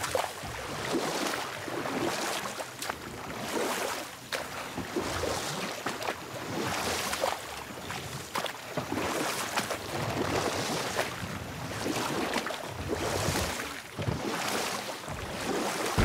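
Oars splash and swish through calm water in a slow, steady rhythm.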